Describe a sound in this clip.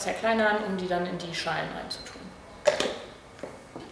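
Plastic parts click together as a blender lid is fitted.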